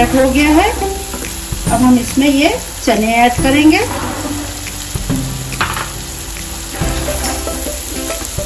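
A sauce sizzles gently in a pan.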